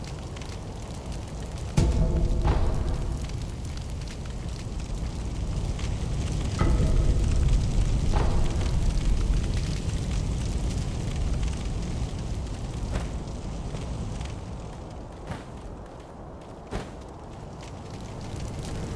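Fire crackles and roars with a low rumble.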